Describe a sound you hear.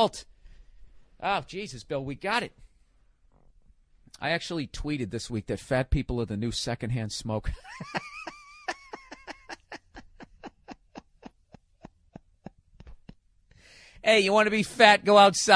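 A man speaks animatedly into a microphone.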